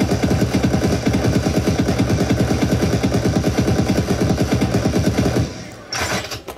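A gun fires rapidly and continuously.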